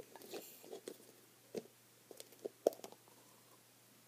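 A plastic toy egg clicks open.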